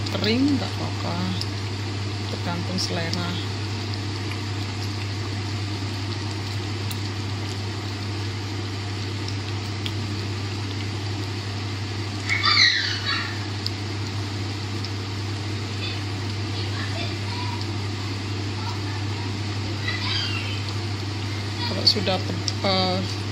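A spatula stirs a thick sauce in a pot, squelching softly.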